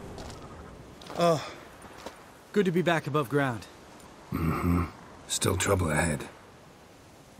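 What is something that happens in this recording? A man speaks in a low, gravelly voice.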